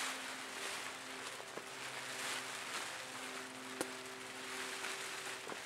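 A foil emergency blanket crinkles and rustles as it is handled.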